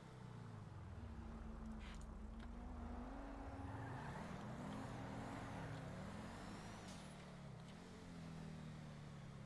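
A car engine revs up and down as a vehicle drives and turns.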